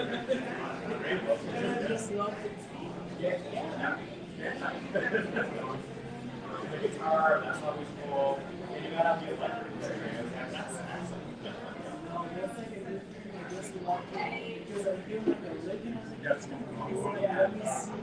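Several adults chatter nearby.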